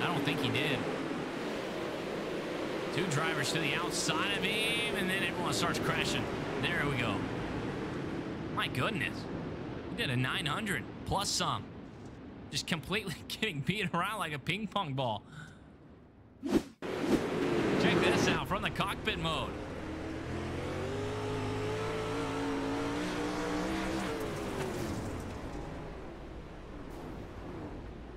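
Several race car engines roar loudly.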